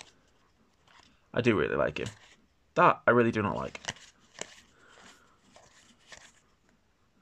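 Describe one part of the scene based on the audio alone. Playing cards slide and flick against each other as they are sorted by hand.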